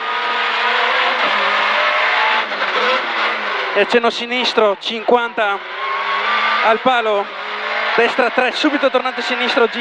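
A car engine roars loudly and revs up and down through gear changes.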